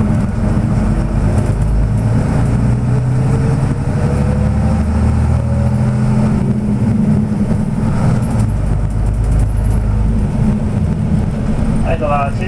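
A vehicle's engine rumbles steadily from inside.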